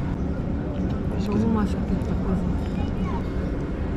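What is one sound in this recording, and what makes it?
A fork scrapes against a ceramic dish.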